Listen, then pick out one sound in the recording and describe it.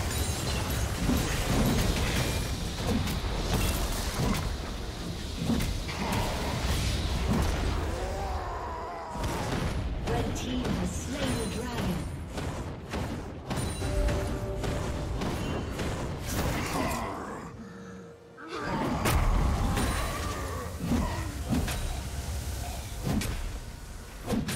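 Fantasy battle effects clash, whoosh and burst in quick succession.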